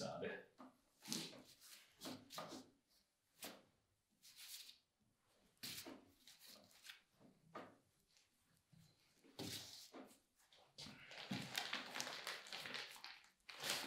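Hands handle a large ham on a table with soft knocks and rustles.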